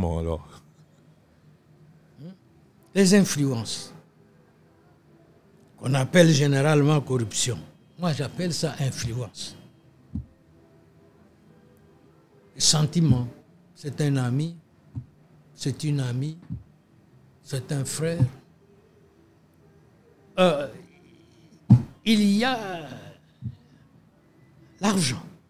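An elderly man speaks calmly and at length into a close microphone, with pauses between phrases.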